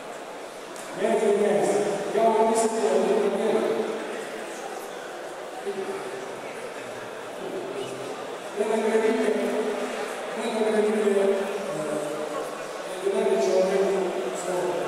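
A second man speaks loudly over loudspeakers, announcing.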